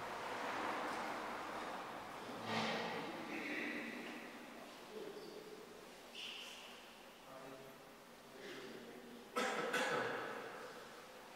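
Footsteps and shuffling echo in a large, reverberant hall.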